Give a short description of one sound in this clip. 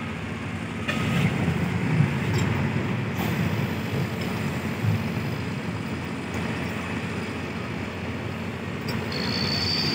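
A crane's engine rumbles steadily outdoors.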